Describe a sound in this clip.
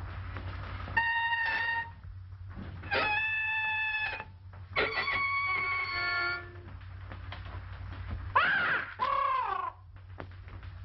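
A musical saw is bowed, giving clear ringing and sliding notes.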